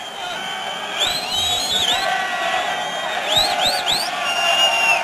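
People in a crowd whistle loudly.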